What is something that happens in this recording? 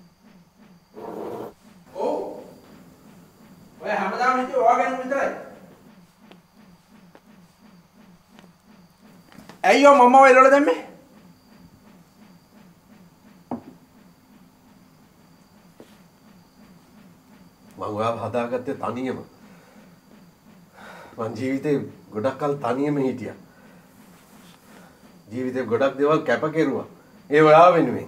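A middle-aged man speaks in a low, strained voice, close by, in short emotional bursts.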